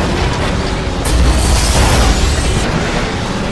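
Cars crash together with a heavy metallic bang.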